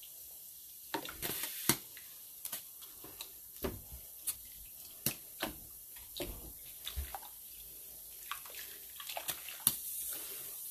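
Metal tongs clink against a metal pot.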